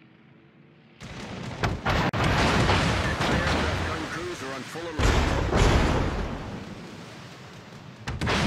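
Shells explode loudly and splash in the water nearby.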